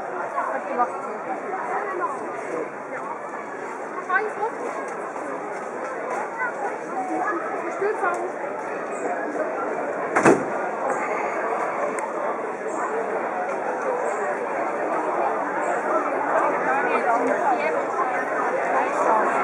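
A crowd of people chatters outdoors.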